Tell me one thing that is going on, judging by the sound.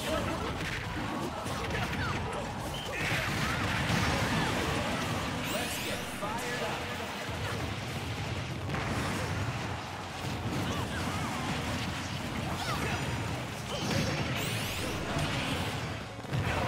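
Video game fighters trade rapid hits, blasts and whooshes.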